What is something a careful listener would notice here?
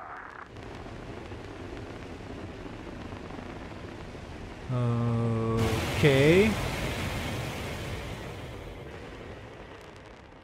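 A rocket engine roars steadily as a rocket lifts off and climbs.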